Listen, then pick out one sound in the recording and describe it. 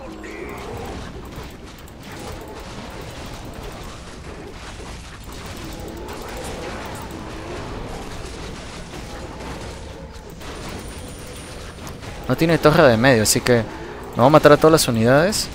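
Game battle sounds of clashing weapons and spells play throughout.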